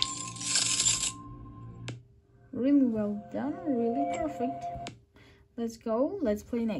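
Playful game jingles and sound effects play from a small tablet speaker.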